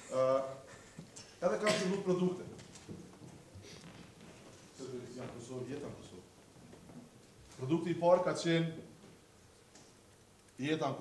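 A man speaks with animation into a microphone, heard in a slightly echoing room.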